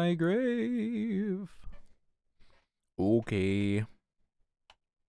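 A young woman sings in a wavering voice close to a microphone.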